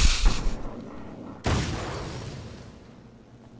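Gunshots ring out with a loud bang.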